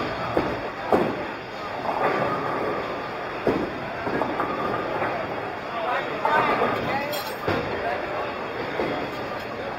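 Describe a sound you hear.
Many people chatter in a large, busy indoor hall.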